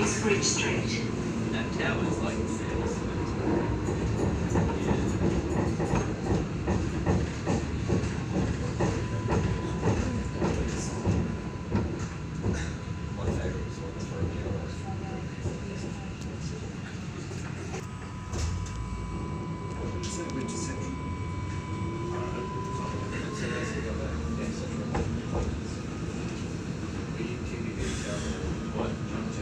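A tram hums and rumbles steadily along its tracks.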